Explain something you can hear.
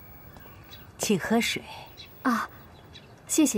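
An elderly woman speaks warmly and kindly nearby.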